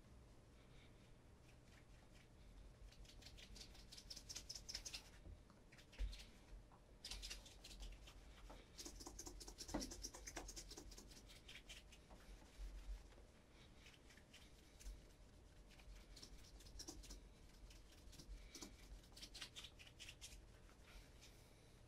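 A cloth rubs briskly against a leather shoe.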